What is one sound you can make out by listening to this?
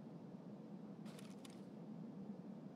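A rifle's gear rattles briefly as the rifle is lowered.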